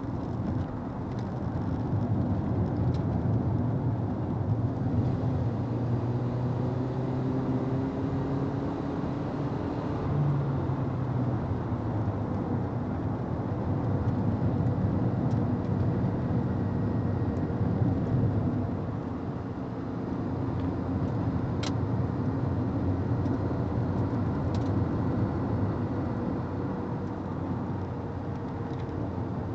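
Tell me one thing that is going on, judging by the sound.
Tyres rumble on the road.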